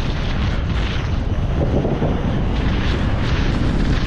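Bicycle tyres rumble across wooden bridge planks.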